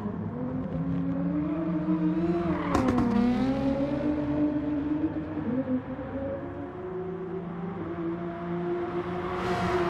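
A racing car engine roars, its pitch rising and falling as the car speeds past.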